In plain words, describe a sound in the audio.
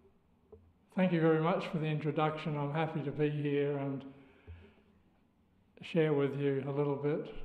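An elderly man speaks calmly and clearly through a microphone in a large room.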